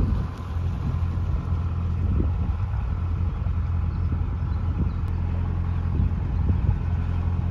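A boat engine hums steadily and low.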